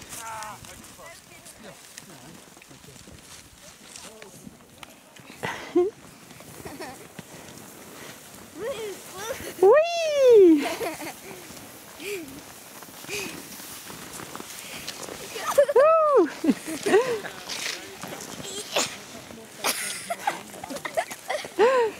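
Skis and poles crunch and scrape on snow.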